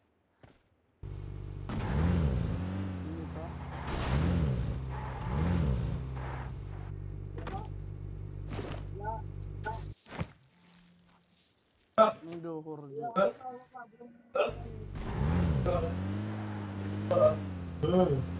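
An off-road jeep engine revs as the jeep drives.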